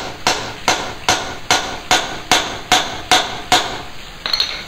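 A heavy chopping blade strikes into wood in rapid blows.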